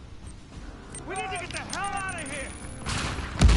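A man exclaims in alarm.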